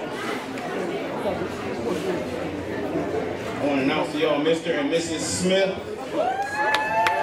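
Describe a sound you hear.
A crowd of men and women chatters in a large room.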